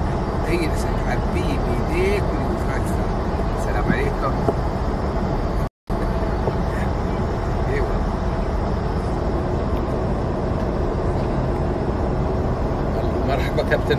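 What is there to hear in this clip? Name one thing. A steady engine roar fills a cabin in flight.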